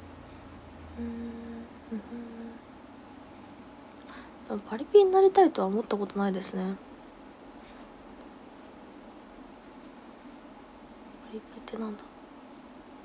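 A young woman speaks softly into a nearby microphone, in short bursts.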